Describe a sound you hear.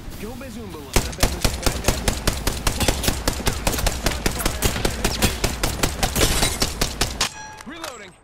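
A heavy machine gun fires rapidly in a long burst.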